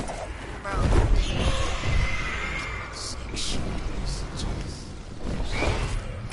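Wind rushes loudly.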